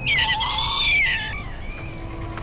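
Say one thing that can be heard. A creature gives a loud, high warbling cry.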